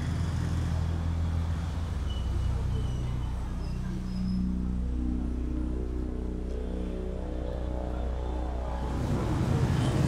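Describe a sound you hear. Soft music plays in the background.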